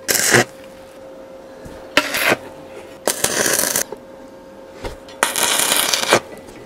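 An electric welder crackles and sizzles in short bursts.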